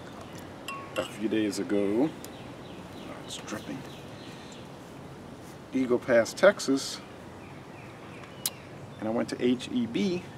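A man speaks calmly and close by, in short bursts.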